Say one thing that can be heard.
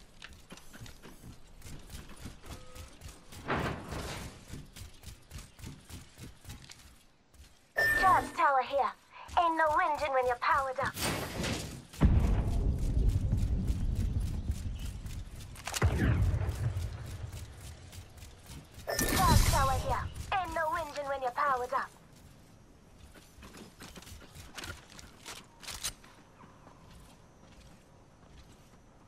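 Quick footsteps patter on a hard metal floor.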